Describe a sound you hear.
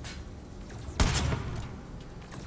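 A suppressed rifle fires a single sharp shot.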